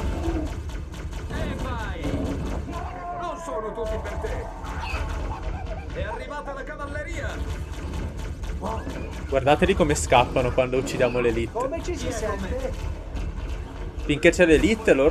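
An energy weapon fires rapid zapping shots.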